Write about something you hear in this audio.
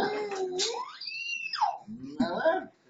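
A young child squeals.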